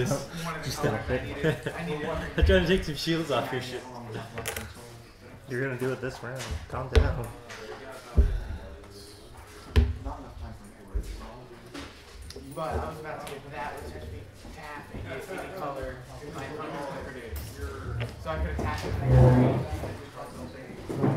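Plastic game pieces click and tap on a table.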